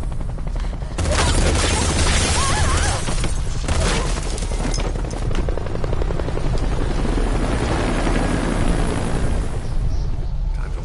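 A loud blast bursts and roars with a rushing hiss.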